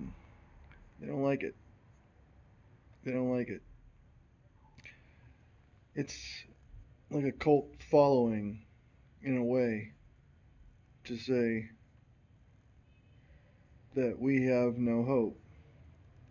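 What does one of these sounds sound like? A middle-aged man speaks calmly and close, in short phrases with pauses.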